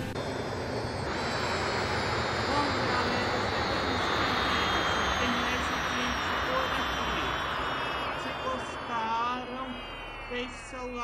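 A jet engine idles with a steady roar.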